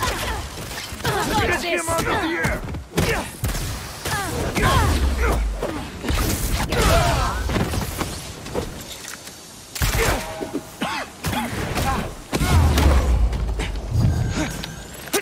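Blows thud and crack in a fast fight.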